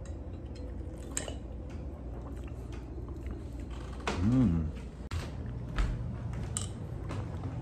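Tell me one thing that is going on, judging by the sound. A man gulps a drink close by.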